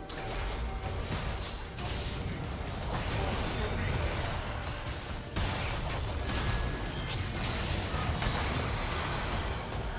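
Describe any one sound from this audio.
Spell effects crackle and whoosh in a busy fantasy battle.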